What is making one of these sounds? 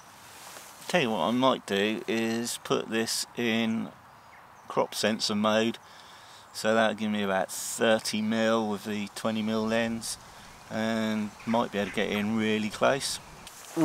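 A man speaks calmly and quietly, close by.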